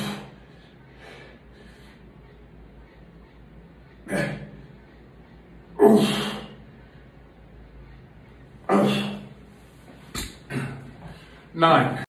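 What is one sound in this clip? A man grunts and exhales loudly with strain, close by.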